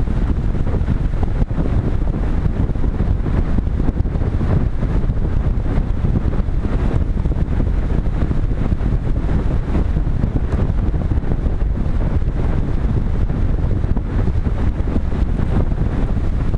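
Wind roars and buffets loudly against a small aircraft in flight.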